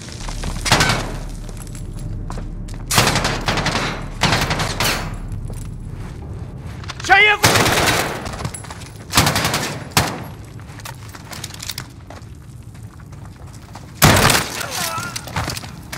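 Gunshots fire in short bursts, with echoing blasts.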